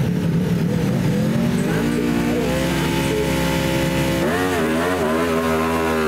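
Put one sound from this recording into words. A motorcycle engine revs loudly and high.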